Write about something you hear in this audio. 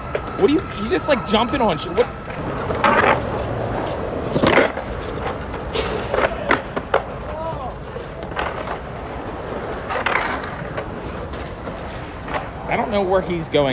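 Skateboard wheels roll and rumble across concrete.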